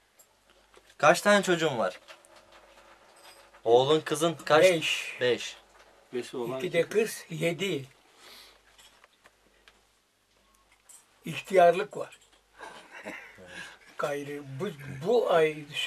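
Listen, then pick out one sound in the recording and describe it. An elderly man speaks slowly and emotionally, close by.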